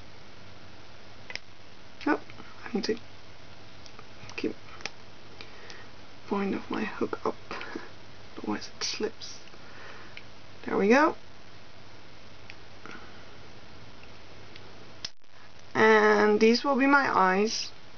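Rubber bands snap and click softly against a small plastic loom.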